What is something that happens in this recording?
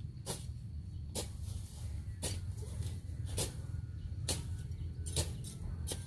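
A hoe chops into the soil in steady, repeated strokes.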